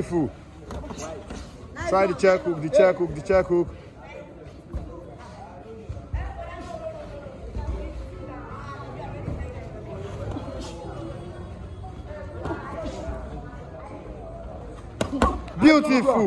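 Boxing gloves thump as punches land.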